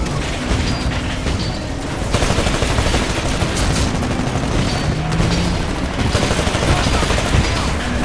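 A large aircraft engine roars.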